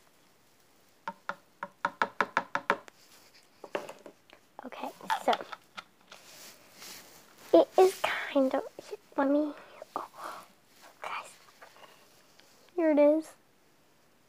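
A plastic bottle crinkles in a hand.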